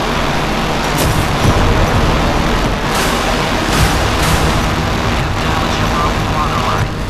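Shells explode on impact.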